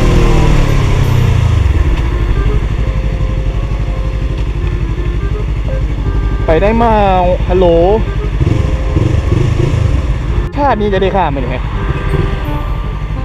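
A motorcycle engine hums and revs as the bike rides.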